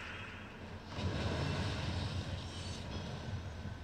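A game's thunder effect crackles and rumbles.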